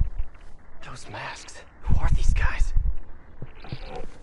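A man speaks in a low, puzzled voice.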